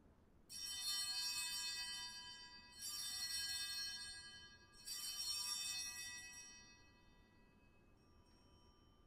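A small bell rings three times, each ring slowly fading.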